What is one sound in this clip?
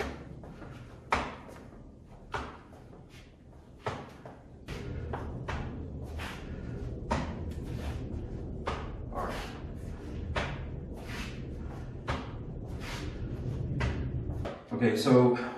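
Kicks and punches thump against padded gloves.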